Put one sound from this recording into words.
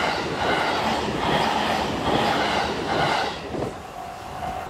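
A train rushes past close by with rhythmic clattering wheels.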